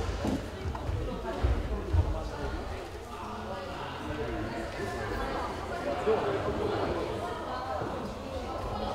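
Several people talk faintly in a large echoing hall.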